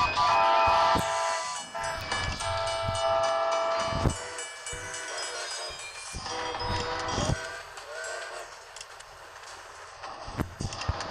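Bright game chimes and jingles ring out in bursts.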